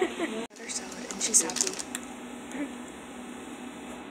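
A plastic wrapper crinkles in a woman's hands.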